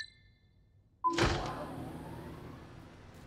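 A heavy metal clunk rings out with a short echo.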